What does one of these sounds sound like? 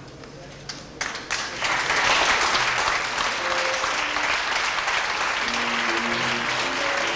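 A large male choir sings in an echoing hall.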